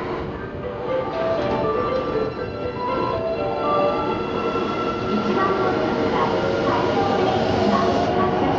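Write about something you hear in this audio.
An electric train pulls away with a rising motor whine.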